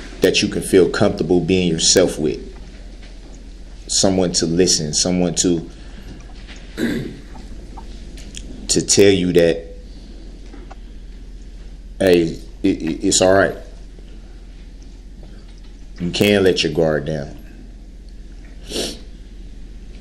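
A man speaks in short bursts with long pauses.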